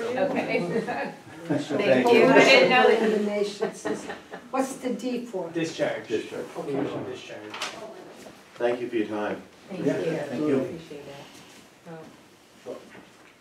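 A man speaks calmly from across a room.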